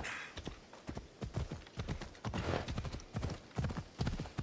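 A horse's hooves thud in a quick gallop on a dirt path.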